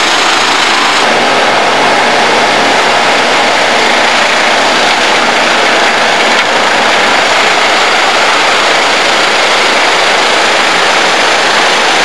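A wood chipper grinds loudly.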